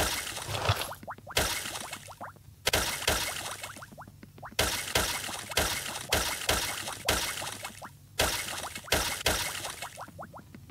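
Short bright chimes rise in pitch as items are collected.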